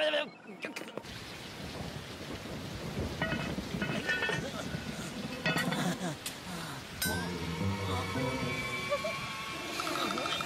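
Rain pours steadily outdoors.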